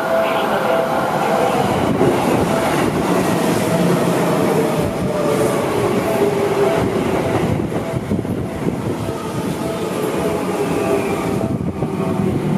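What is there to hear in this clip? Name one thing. A train rumbles and clatters past close by.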